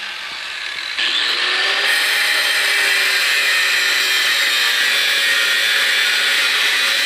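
An angle grinder cuts into metal with a harsh, grating screech.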